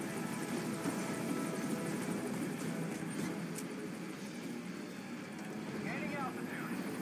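A helicopter's engine and rotor roar steadily nearby.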